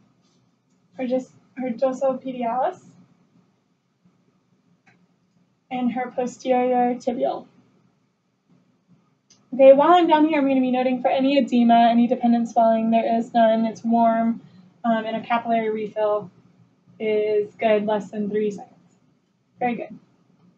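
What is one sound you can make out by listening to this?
A young woman speaks calmly and clearly, close by, explaining.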